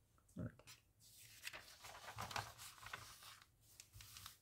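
Magazine pages rustle as they are turned.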